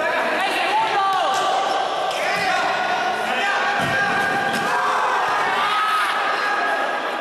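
Sneakers squeak sharply on a hard indoor floor.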